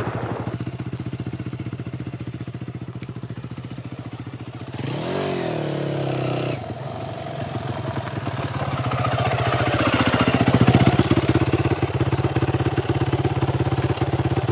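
A dirt bike engine putters steadily and revs up as it approaches.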